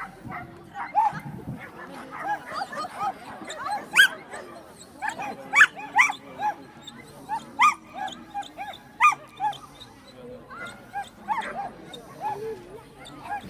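A dog barks sharply now and then outdoors.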